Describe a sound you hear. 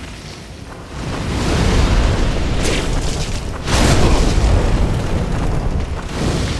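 Fire blasts with a loud roar.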